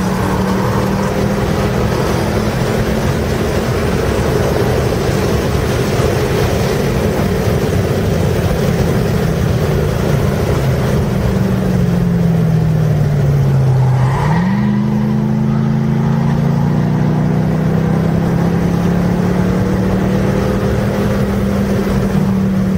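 Wind and tyre noise rush steadily past the car.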